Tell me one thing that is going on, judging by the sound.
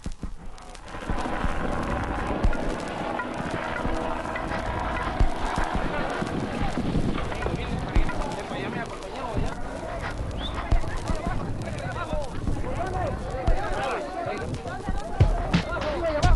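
A crowd shouts and clamours outdoors.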